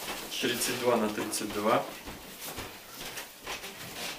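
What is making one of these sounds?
Denim fabric rustles as hands move a pair of jeans.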